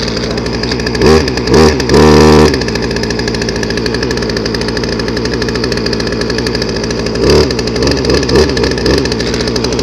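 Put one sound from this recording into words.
A chainsaw engine revs up loudly in short bursts.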